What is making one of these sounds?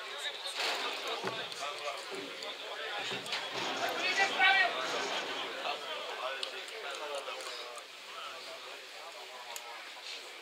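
Several adult spectators chat nearby outdoors.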